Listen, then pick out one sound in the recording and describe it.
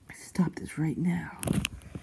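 A small plastic toy figure bumps softly on a carpet.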